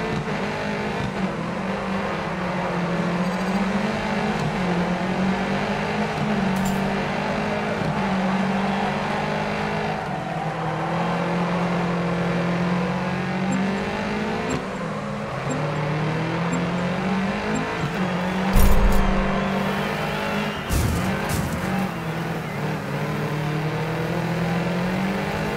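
A rally car engine revs hard and shifts up and down through the gears.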